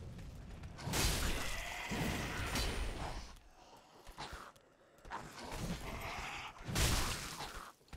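Swords clash and strike in a game fight.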